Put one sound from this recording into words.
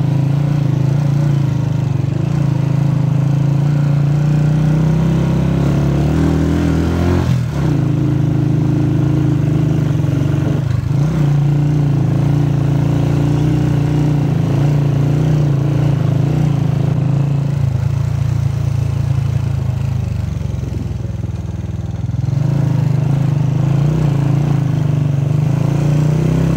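Tyres crunch and rumble over a gravel track.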